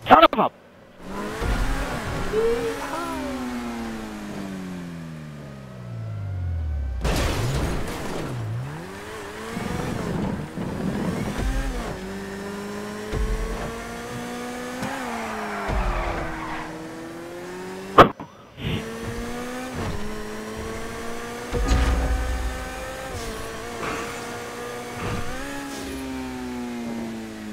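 A sports car engine roars and revs up and down at high speed.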